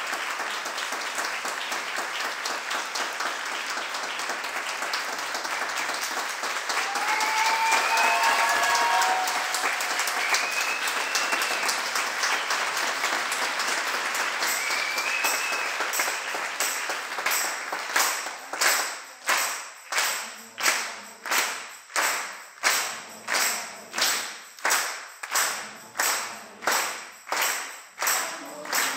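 A large audience applauds loudly in a hall, then claps together in a steady rhythm.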